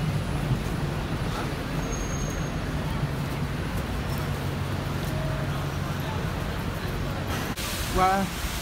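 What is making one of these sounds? A bustling crowd murmurs on a busy street.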